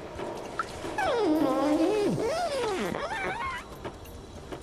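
A robot makes warbling electronic sounds, rising and falling in pitch.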